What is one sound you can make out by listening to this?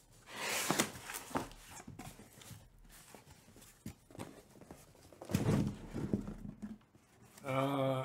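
Cardboard scrapes and rustles as a box is handled.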